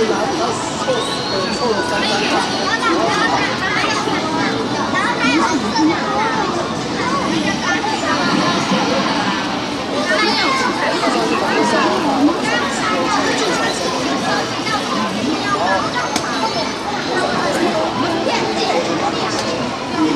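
Game music and sound effects play from an arcade machine's speakers.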